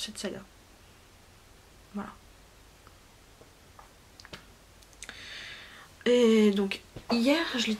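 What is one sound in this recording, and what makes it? A woman speaks animatedly close to a microphone.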